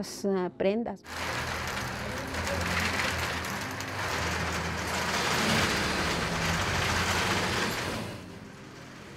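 Spinning bobbins on a winding machine whir and rattle steadily.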